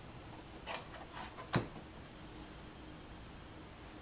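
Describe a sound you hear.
A playing card is laid down on a table with a soft tap.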